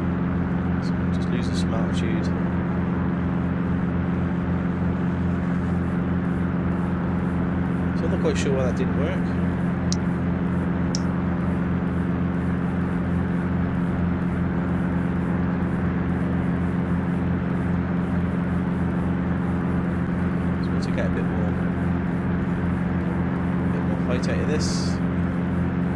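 A propeller engine drones steadily inside a small plane's cabin.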